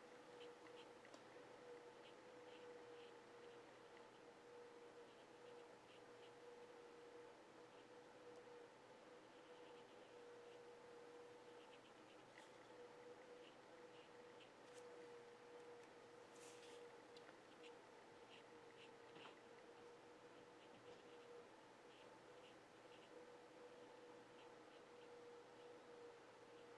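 A brush taps and strokes softly on paper.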